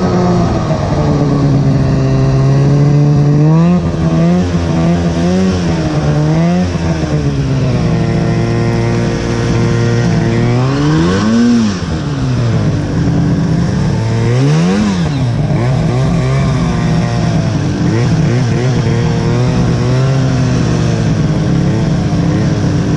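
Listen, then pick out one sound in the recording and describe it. A snowmobile engine roars loudly, revving up and down throughout.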